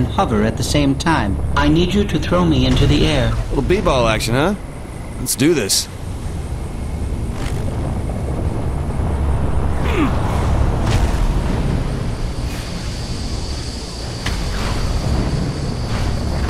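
Wind rushes steadily past a figure gliding through the air.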